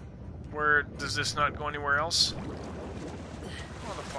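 Water splashes as a swimmer climbs out.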